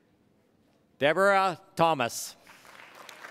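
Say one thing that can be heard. A man announces loudly through a microphone in a large hall.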